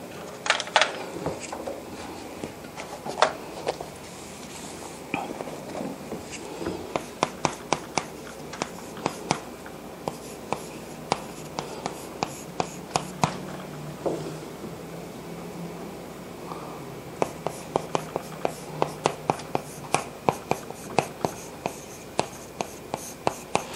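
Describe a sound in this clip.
Chalk taps and scrapes on a blackboard in quick strokes.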